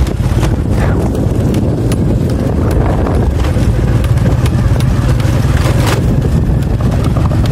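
Strong wind buffets and roars outdoors.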